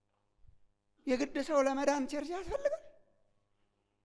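A middle-aged man preaches with animation through a microphone in an echoing hall.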